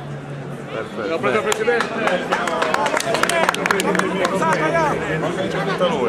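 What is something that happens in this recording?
A crowd claps its hands.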